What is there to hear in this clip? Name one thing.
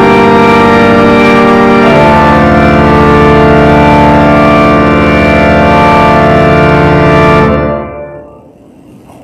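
A pipe organ plays sustained chords that ring out in a large echoing hall.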